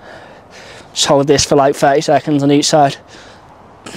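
A man speaks calmly and clearly, close by, outdoors.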